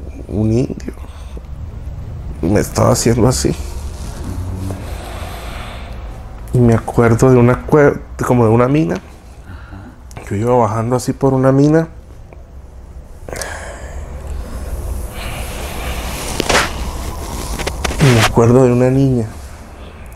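A man speaks close by in drawn-out, strained bursts.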